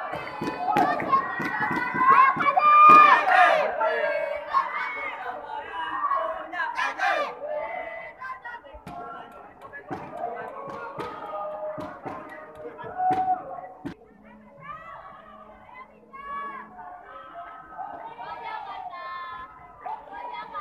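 Spectators shout and cheer in an echoing hall.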